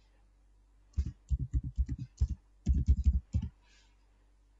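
Keys on a keyboard click quickly as someone types.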